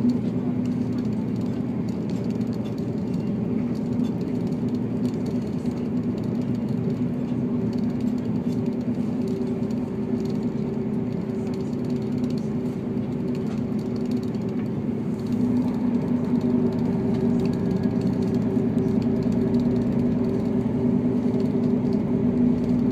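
A diesel railcar's engine drones, heard from inside the carriage at speed.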